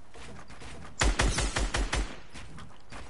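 Wooden building pieces snap into place with quick knocks.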